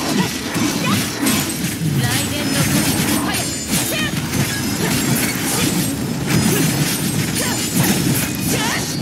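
Blades slash and strike in rapid bursts.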